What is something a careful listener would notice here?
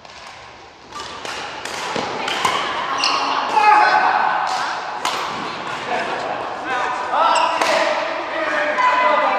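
Rackets sharply hit a shuttlecock back and forth in a large echoing hall.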